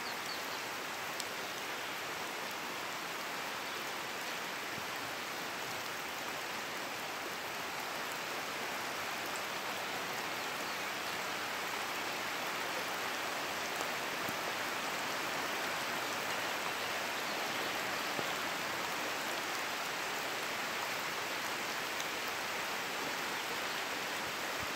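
A flooded river rushes steadily past.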